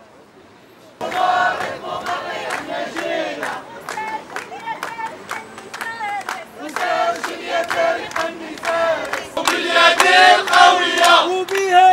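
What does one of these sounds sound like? A crowd of men and women chants slogans loudly outdoors.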